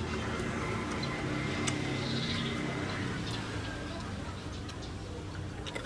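A young woman crunches on a raw vegetable.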